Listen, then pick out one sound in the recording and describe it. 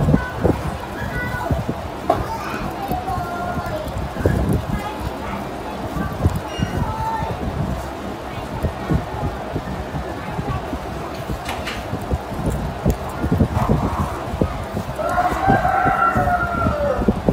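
Soft, wet matter squelches and crackles as fingers squeeze it.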